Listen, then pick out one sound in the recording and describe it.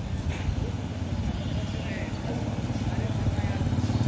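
A motorcycle approaches along a quiet street, its engine growing louder.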